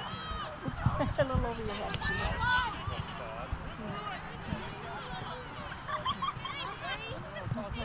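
A soccer ball is kicked with a dull thump.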